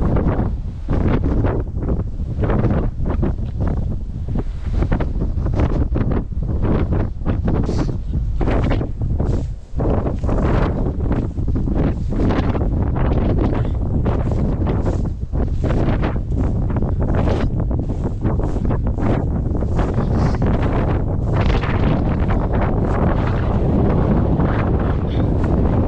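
Dry grass rustles and swishes in the wind.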